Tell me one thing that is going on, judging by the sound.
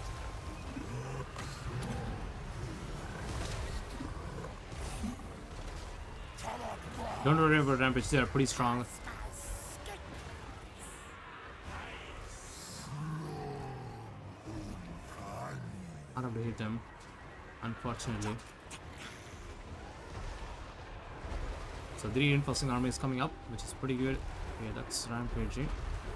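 Battle noise of clashing weapons and magical blasts rumbles on.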